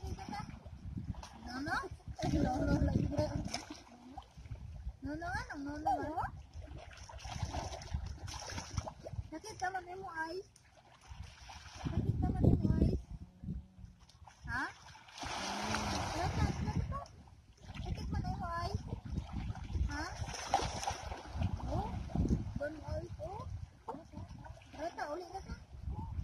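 Water splashes and laps around people wading.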